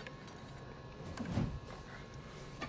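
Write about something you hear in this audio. A heavy metal axe clanks as it is hung on a wall.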